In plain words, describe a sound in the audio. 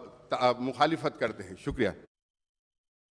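A middle-aged man speaks with animation into a microphone in a large hall.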